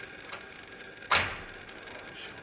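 A piano bench creaks and scrapes as a person sits down.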